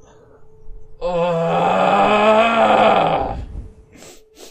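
A short, low musical tune plays and fades.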